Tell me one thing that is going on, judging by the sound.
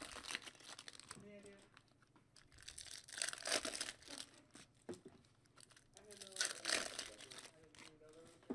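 Foil wrappers crinkle and tear as they are pulled open.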